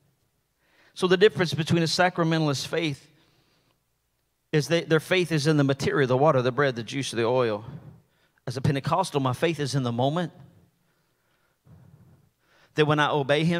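A middle-aged man speaks with animation into a microphone, heard through loudspeakers in a large room.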